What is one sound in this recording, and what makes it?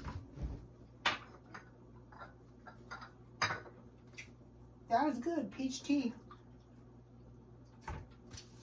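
Dishes clink on a countertop.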